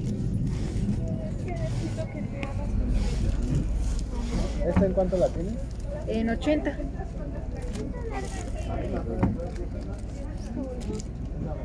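Notebooks knock softly against one another.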